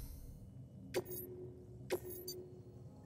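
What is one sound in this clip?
Soft electronic menu clicks sound as selections change.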